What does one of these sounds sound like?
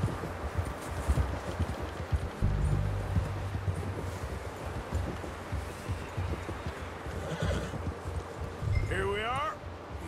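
Horse hooves crunch through deep snow at a steady trot.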